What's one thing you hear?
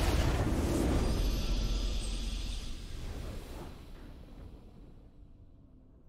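A triumphant fanfare swells and fades out.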